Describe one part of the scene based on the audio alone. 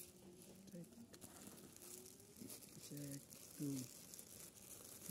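Plastic wrapping rustles and crinkles as packages are handled.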